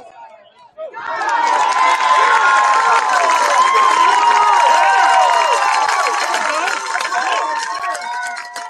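A large crowd cheers loudly outdoors and then dies down.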